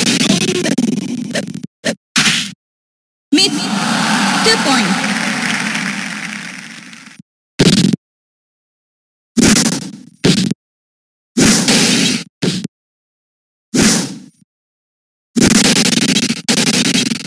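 Arcade game sound effects play in short bursts, with whooshes and hits.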